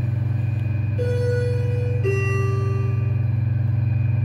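An elevator chime rings two descending tones.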